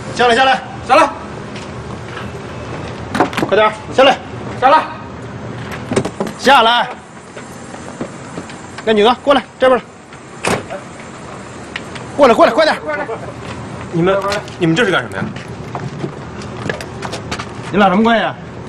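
A young man shouts firmly nearby.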